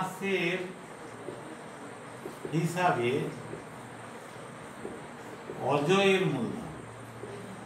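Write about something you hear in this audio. A middle-aged man speaks calmly in short phrases close by.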